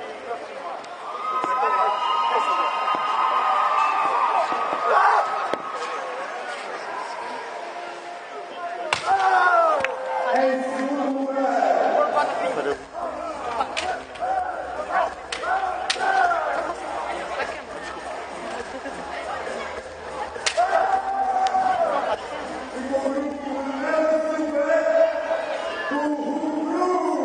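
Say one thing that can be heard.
Men shout loudly in bursts while sparring.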